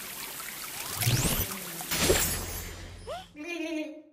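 A shower sprays water.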